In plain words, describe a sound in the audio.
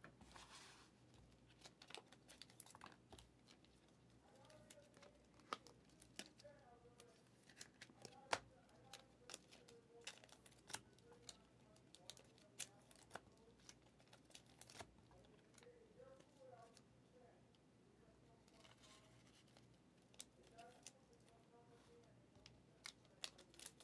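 Trading cards tap and rustle as hands shuffle them.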